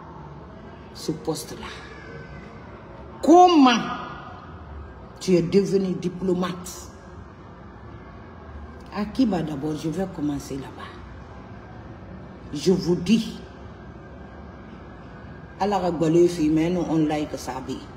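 A woman speaks emotionally in bursts, close to a microphone, with pauses between.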